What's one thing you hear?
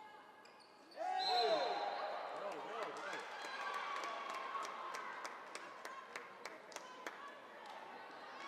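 A crowd cheers and shouts from the stands.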